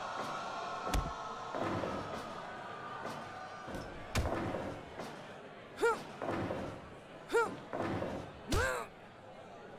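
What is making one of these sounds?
Bodies thud heavily onto a wrestling mat, again and again.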